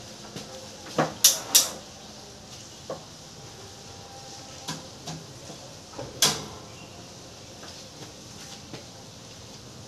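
Plastic fan parts knock and clatter as a woman handles them.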